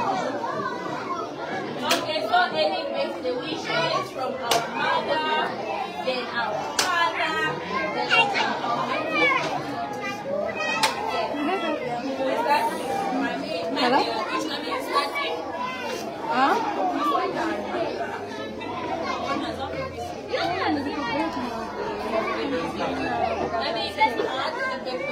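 Young children chatter and call out nearby.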